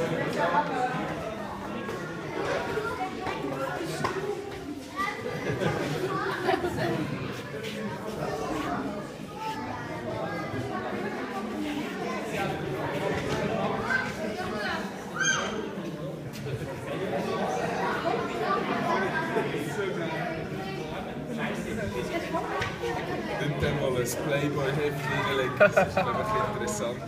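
People chatter nearby.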